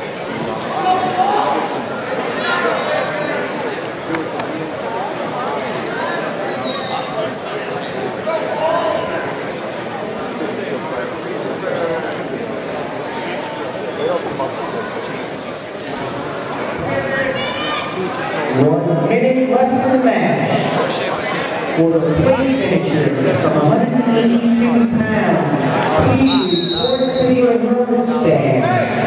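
A crowd of spectators murmurs and shouts in a large echoing gym.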